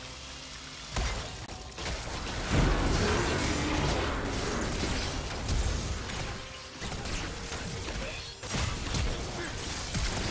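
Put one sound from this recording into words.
Game spell effects crackle and burst during a fight.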